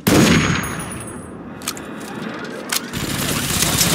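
A rifle's bolt and magazine click during a reload.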